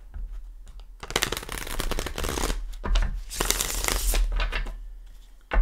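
Playing cards are shuffled with a brisk riffling rustle.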